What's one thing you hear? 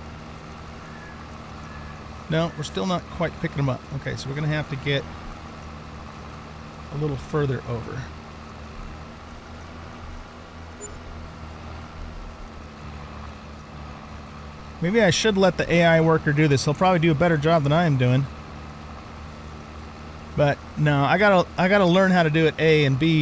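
A tractor engine hums steadily at a low pitch.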